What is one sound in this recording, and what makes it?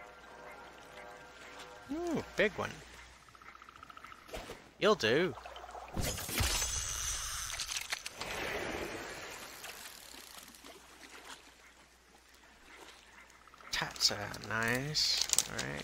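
Fish splash in water.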